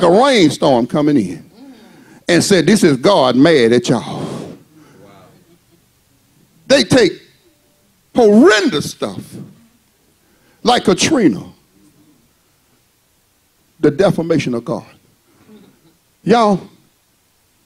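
A man preaches with passion into a microphone, in bursts with pauses.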